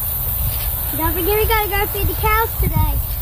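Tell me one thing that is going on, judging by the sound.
A young girl speaks in a high, lively voice close by.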